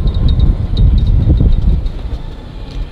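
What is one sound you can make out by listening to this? Wind rumbles against a microphone outdoors.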